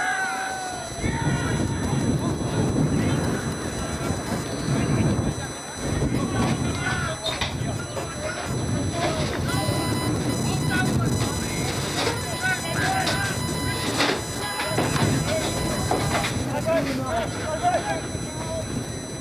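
Wind buffets outdoors with a low rumble.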